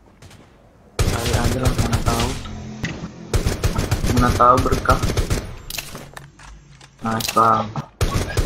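A rifle fires shot after shot.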